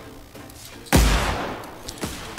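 A heavy blow lands with a loud thump.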